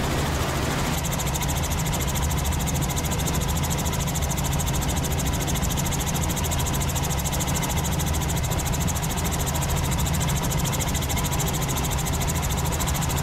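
A helicopter's engine and rotor drone steadily from inside the cabin.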